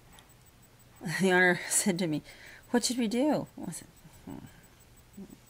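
A middle-aged woman speaks close to a webcam microphone, in a lively, expressive voice.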